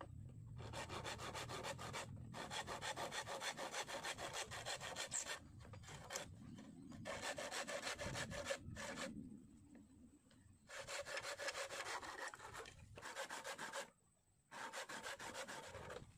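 A hand saw cuts through bamboo with quick, rasping strokes.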